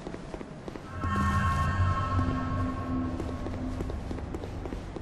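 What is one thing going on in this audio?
A shimmering magical chime rings out and fades.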